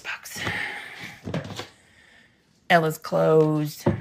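A plastic bin lid thumps shut.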